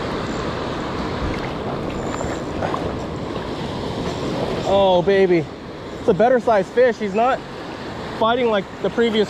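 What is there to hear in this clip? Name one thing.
Waves wash and break steadily on a shore.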